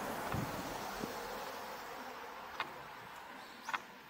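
A car passes by on the street and fades away.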